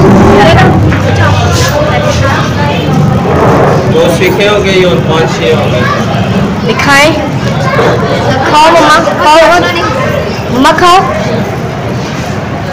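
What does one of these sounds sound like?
Women and children chatter in a busy crowd.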